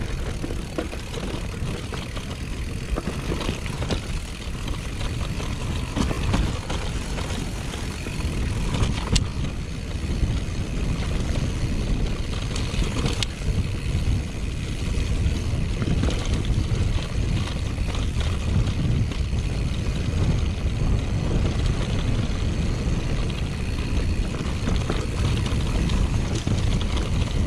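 A mountain bike rattles and clanks over stones.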